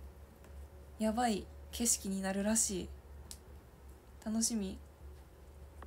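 A young woman speaks softly and close by in short bursts.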